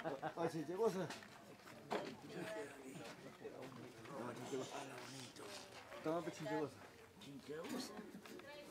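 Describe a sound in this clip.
An adult man and woman talk nearby outdoors.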